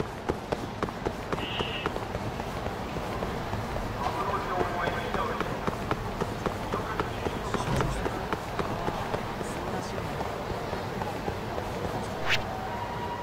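Footsteps slap quickly on pavement.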